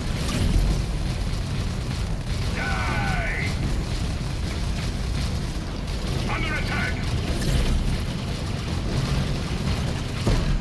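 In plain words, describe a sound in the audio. Guns fire in rapid, rattling bursts.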